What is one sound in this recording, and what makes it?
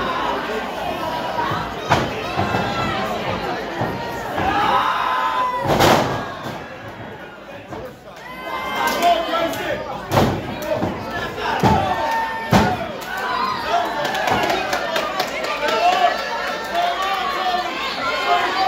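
A crowd cheers and shouts in an echoing hall.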